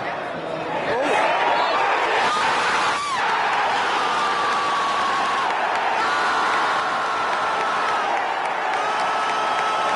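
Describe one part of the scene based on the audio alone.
A stadium crowd erupts in a loud roar of cheering.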